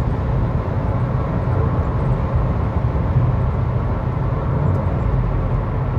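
A tanker truck rumbles past in the oncoming lane.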